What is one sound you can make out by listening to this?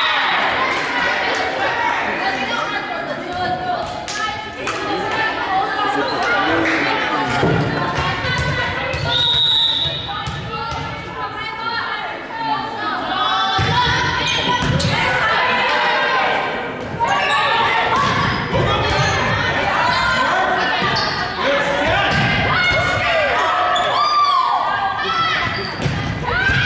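Young women shout and call out in a large echoing gym.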